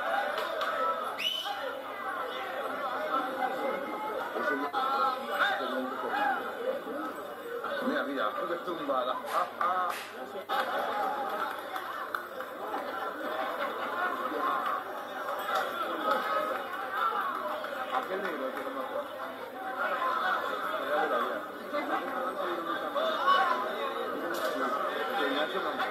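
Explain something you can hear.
A crowd of young people shouts, cheers and laughs nearby outdoors.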